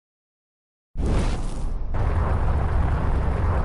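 A spaceship engine roars with a loud rushing whoosh.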